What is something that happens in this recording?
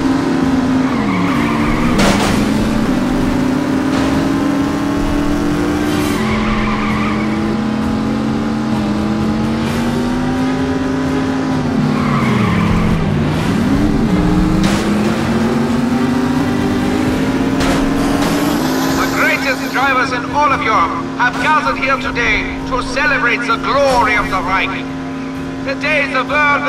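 A racing car engine drones and revs, rising and falling in pitch.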